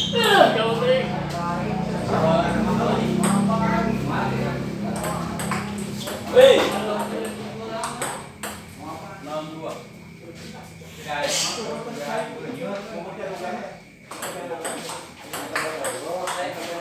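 A ping-pong ball clicks back and forth on paddles and a table.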